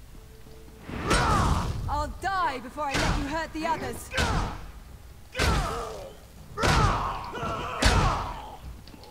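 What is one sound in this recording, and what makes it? Magic spells burst and crackle in a fight.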